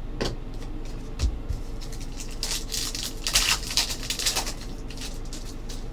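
Cards rustle and slide against each other in hands.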